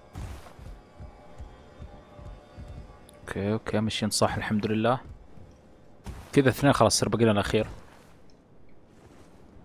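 Footsteps thud on a wooden surface.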